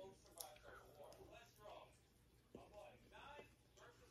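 A woman chews food with her mouth closed.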